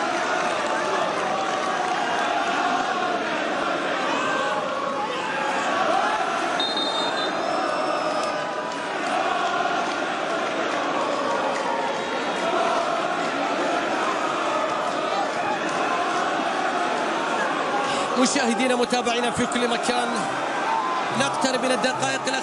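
A large stadium crowd chants and cheers loudly throughout.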